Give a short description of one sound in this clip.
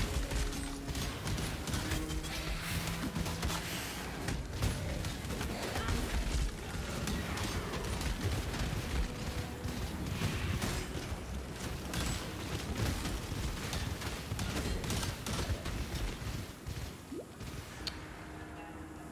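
Game spells crackle and clash in quick bursts.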